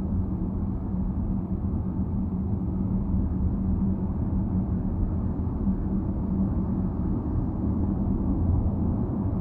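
A car's engine hums and tyres roar steadily on a highway, heard from inside the car.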